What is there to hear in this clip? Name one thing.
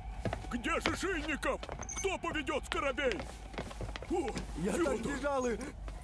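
A middle-aged man shouts loudly nearby.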